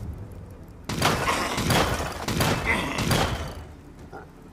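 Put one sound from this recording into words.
A character's attack strikes with a loud burst of game sound effects.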